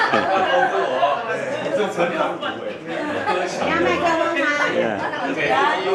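Middle-aged men and women laugh together close by.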